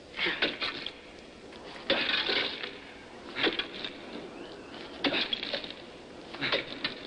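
A man chops at ice with sharp, crunching blows that come in bursts.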